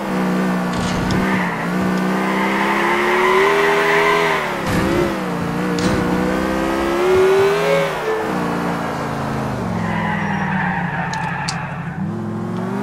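Tyres screech on pavement as a car slides through turns.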